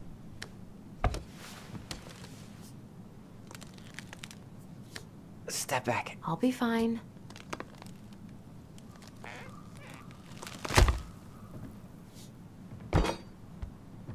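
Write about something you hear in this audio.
A crowbar thuds and creaks against wooden floorboards.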